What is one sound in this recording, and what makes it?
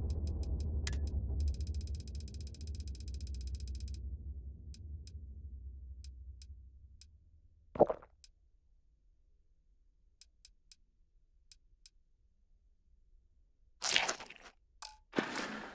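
Soft interface clicks tick as items are scrolled.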